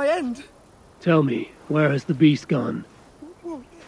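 A man with a deep voice asks a question calmly, close by.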